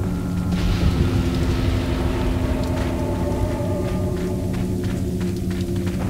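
Footsteps hurry over hard ground.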